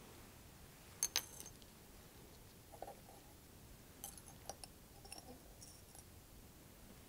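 Glass clinks faintly as small lab items are handled.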